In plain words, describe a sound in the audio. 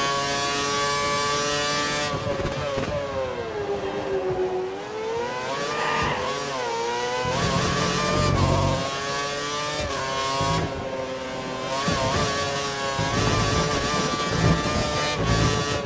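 A racing car engine screams at high revs, dropping and rising in pitch as the car brakes and accelerates through corners.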